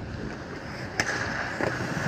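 A hockey puck clacks sharply off a stick.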